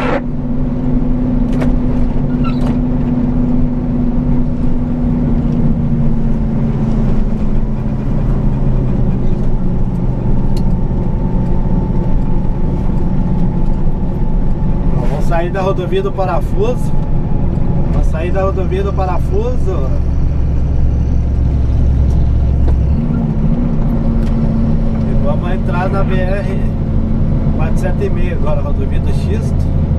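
A truck engine drones steadily while driving along a road.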